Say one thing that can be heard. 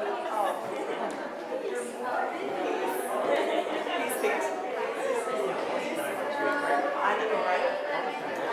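Several men and women chat among themselves in a large, echoing hall.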